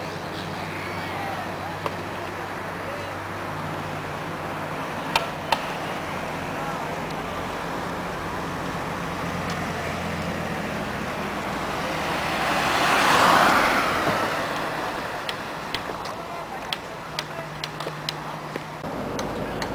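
Cars pass by on a road outdoors.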